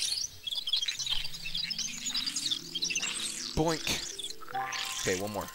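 A small cartoon creature sings a cheerful, wavering tune.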